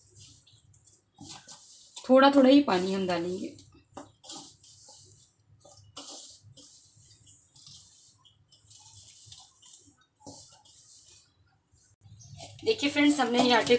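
Hands squish and knead crumbly dough in a metal bowl.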